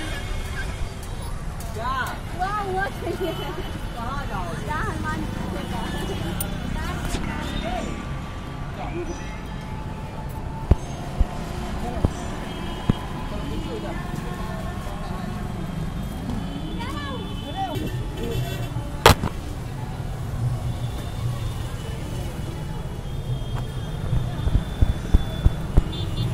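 Traffic rumbles steadily on a road outdoors.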